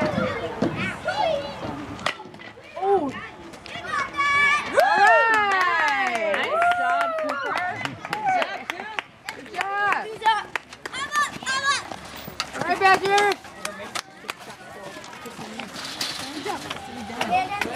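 Young boys shout and chatter excitedly nearby, outdoors.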